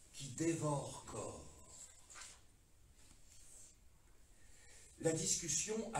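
A middle-aged man speaks with expression in a room with slight echo, pausing between phrases.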